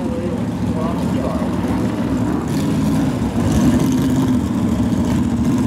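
A big engine idles with a loud, lumpy rumble close by.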